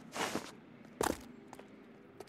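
A man's shoes thud as he jumps down and lands.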